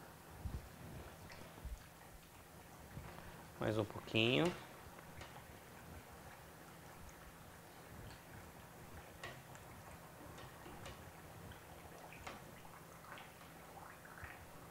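Metal tongs clink lightly against a pan.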